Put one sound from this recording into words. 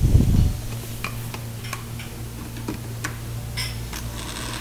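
A plastic grinder jar clicks and knocks into place on its base.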